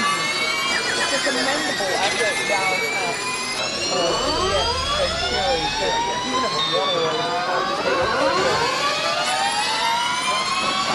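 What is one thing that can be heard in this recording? Another racing car engine drones close ahead.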